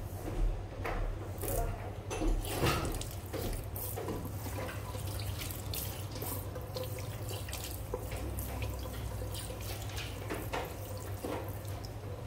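Water from a tap splashes over bare feet into a basin.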